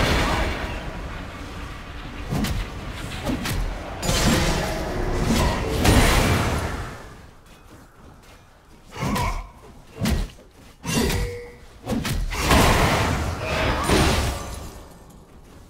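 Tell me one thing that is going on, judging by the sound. Weapons clash and strike in quick hits.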